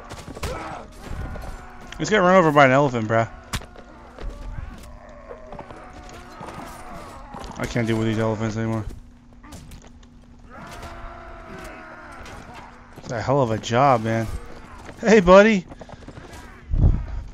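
Weapons clash and thud in a battle.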